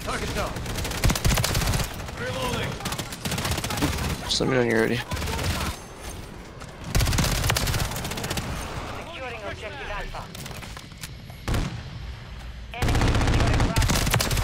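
Rapid submachine gun fire bursts in a video game.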